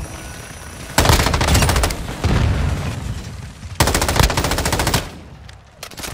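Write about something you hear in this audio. An automatic rifle fires rapid bursts up close.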